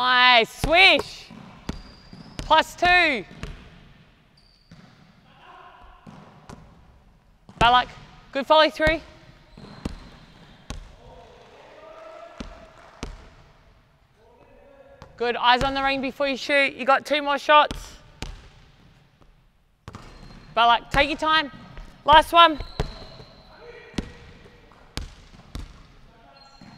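A basketball thumps on a wooden floor and slaps into hands in a large echoing hall.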